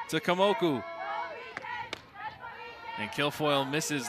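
A softball smacks into a catcher's mitt.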